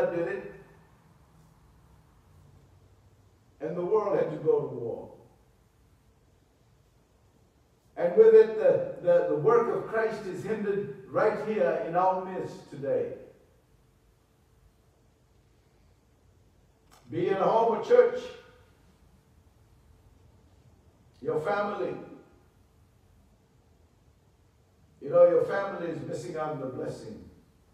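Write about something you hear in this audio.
A middle-aged man speaks at a measured pace into a microphone, with pauses between phrases.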